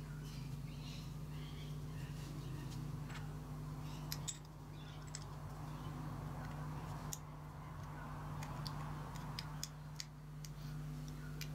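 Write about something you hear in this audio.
Metal parts click and clink together as they are handled.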